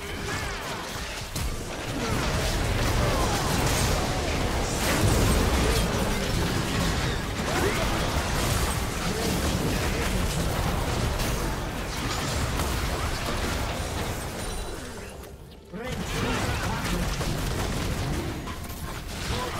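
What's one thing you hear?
Magic blasts and weapon hits crash in a hectic battle.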